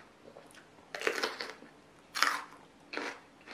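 A young woman crunches loudly on crisp vegetables close to a microphone.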